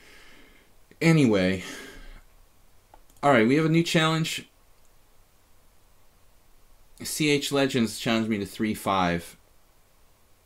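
A middle-aged man talks into a microphone in short bursts.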